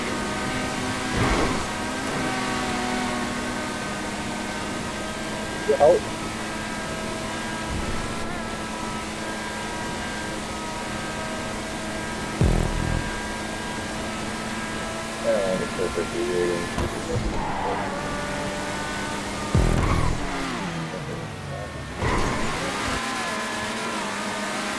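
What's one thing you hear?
A race car engine roars steadily at high revs.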